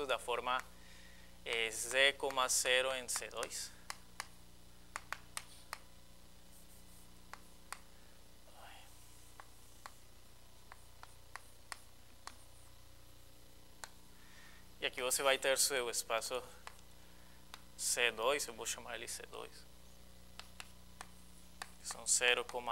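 A young man speaks calmly, as if lecturing.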